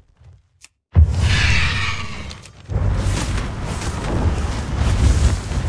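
A large bird flaps its wings with a whooshing rush.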